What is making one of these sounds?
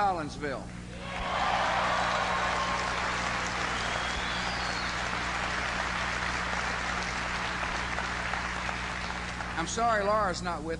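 A crowd applauds and cheers.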